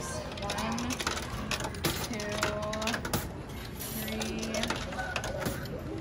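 Coins clink as they drop into a slot.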